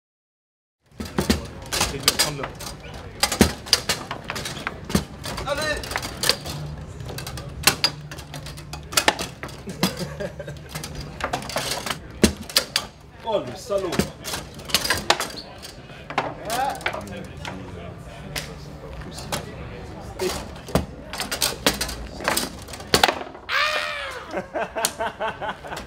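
Foosball rods spin and the ball clacks sharply against the table.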